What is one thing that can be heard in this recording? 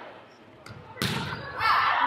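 A volleyball is struck hard.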